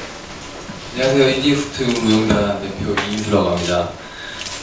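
A young man talks into a handheld microphone over a loudspeaker.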